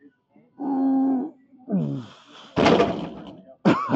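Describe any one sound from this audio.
A weight machine clanks as its weights lift and drop.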